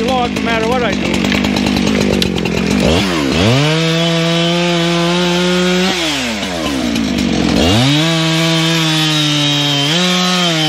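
A chainsaw engine roars loudly, revving up and dropping back to idle again and again.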